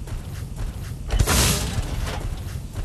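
A launcher fires with a heavy thump and a rushing whoosh.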